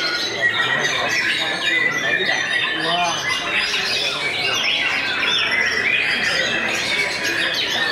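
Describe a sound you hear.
A caged songbird sings a rapid, varied song with chirps and whistles.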